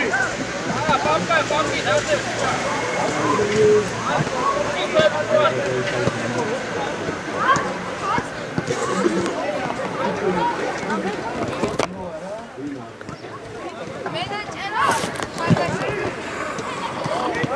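Young boys shout and call to each other outdoors.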